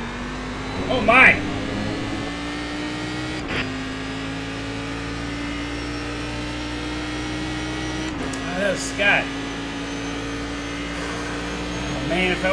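A race car engine drones steadily, shifting gear now and then.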